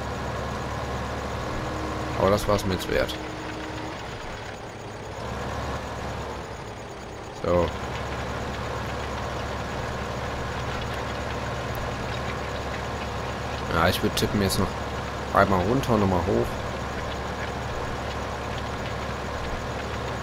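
A diesel tractor engine drones steadily while pulling a cultivator.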